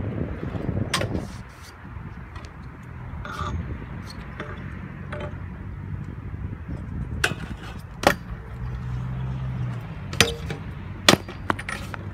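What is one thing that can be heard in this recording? Scooter decks clack against the ground in sharp knocks.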